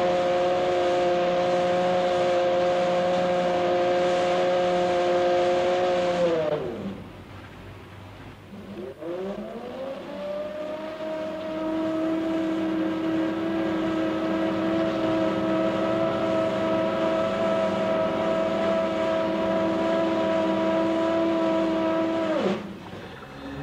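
A crane motor whines steadily, winds down, then winds back up.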